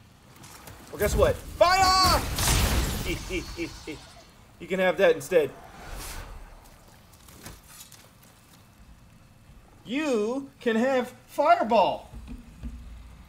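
A young man speaks and exclaims with animation into a nearby microphone.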